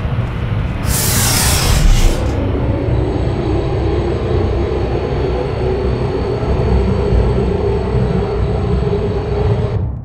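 An elevator hums and rumbles steadily as it moves.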